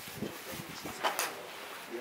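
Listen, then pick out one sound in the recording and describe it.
A golf club strikes a ball with a sharp crack outdoors.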